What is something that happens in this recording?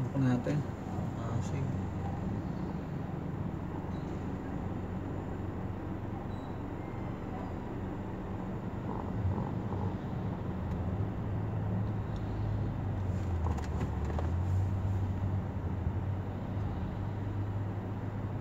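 Traffic hums steadily all around outdoors.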